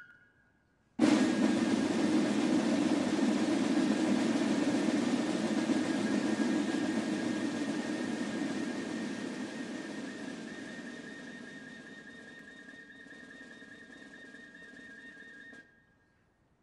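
Fifes play a shrill, steady melody outdoors.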